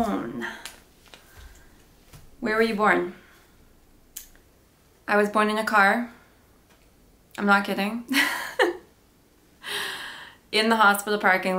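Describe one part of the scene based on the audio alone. A young woman speaks calmly and close to the microphone, in short phrases with pauses.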